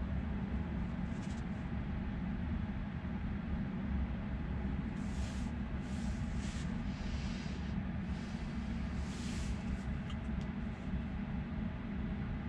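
Low road noise hums steadily inside a slowly moving car.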